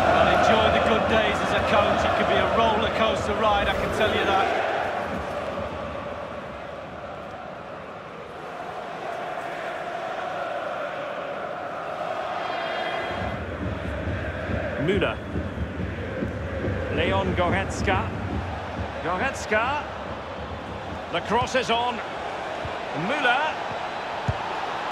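A large stadium crowd roars and chants loudly, then settles into a steady murmur.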